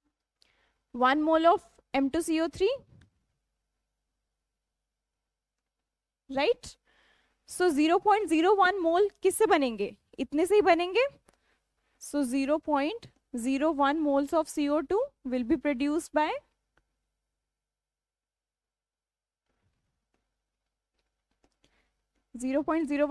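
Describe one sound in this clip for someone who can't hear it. A young woman explains calmly and clearly into a close microphone, with pauses.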